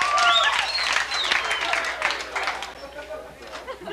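A crowd cheers and shouts loudly in a large room.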